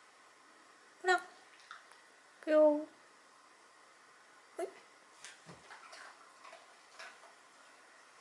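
A dog howls and yelps in short bursts close by.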